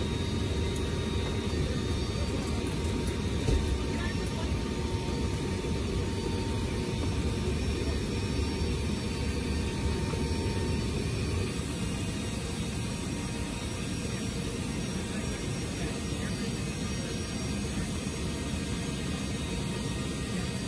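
Aircraft engines drone steadily with a low roar.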